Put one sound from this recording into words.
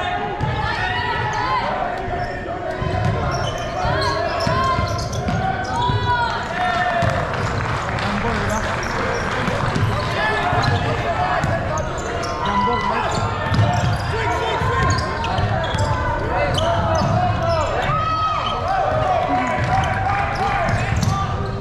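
Young men shout and call out to each other across the hall.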